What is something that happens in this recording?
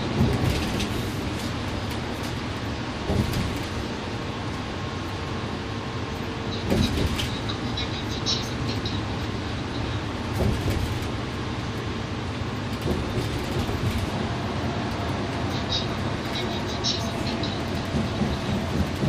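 A bus engine hums and the cabin rumbles steadily.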